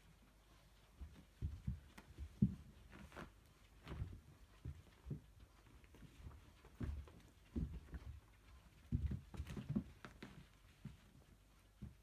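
Two cats tussle, thumping and scuffling on a rug.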